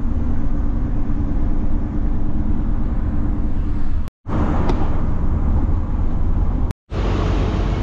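A car engine hums steadily while driving on a highway.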